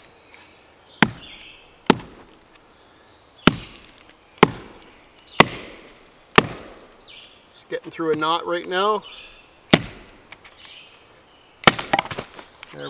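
A wooden mallet strikes wood with sharp, repeated knocks.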